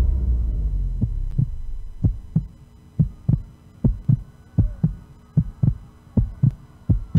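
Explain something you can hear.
A deep double thump like a heartbeat pounds slowly through loudspeakers.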